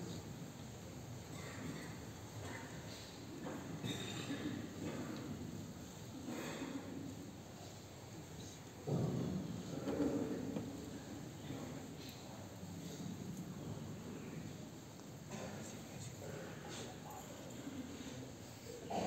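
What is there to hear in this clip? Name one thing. A large crowd rustles and shuffles softly in a large echoing hall.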